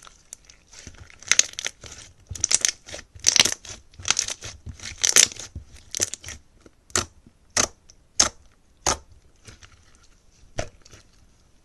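Slime squelches and pops loudly as hands squeeze and press it.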